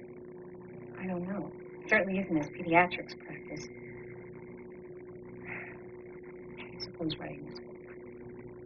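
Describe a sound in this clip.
A woman speaks softly and emotionally in short phrases.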